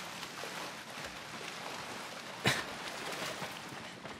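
Water splashes as someone wades out of the shallows.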